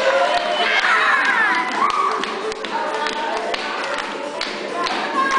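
Children sing loudly.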